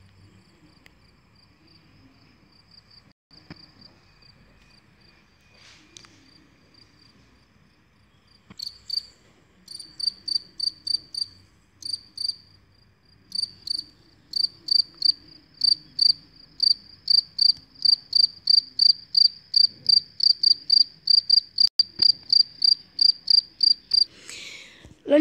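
A cricket chirps in quick, steady bursts, getting louder.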